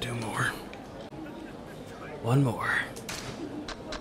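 Mahjong tiles clack down onto a table.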